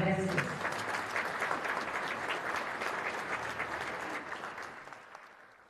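A large audience applauds in an echoing hall, and the applause slowly fades.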